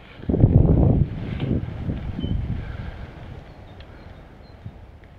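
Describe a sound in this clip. Wind buffets loudly in gusts, then eases.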